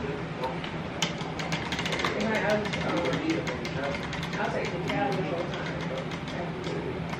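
A prize wheel spins with rapid clicking ticks.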